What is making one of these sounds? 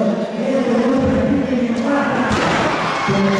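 A body slams heavily onto a wrestling mat.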